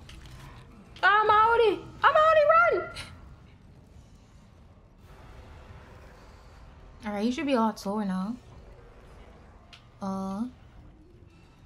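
A young woman speaks animatedly into a close microphone.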